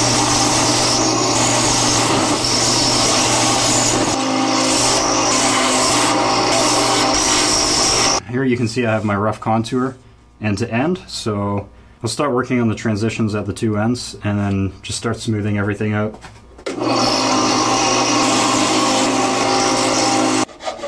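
A belt sander whirs loudly as wood is pressed against the belt and ground down.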